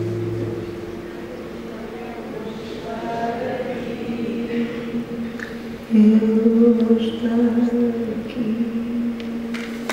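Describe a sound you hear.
A woman sings into a microphone over a loudspeaker in a large echoing hall.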